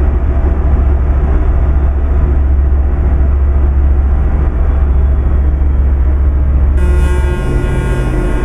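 A heavy truck engine drones steadily at low pitch.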